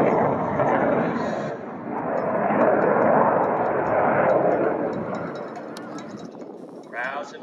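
A jet roars loudly overhead and slowly fades.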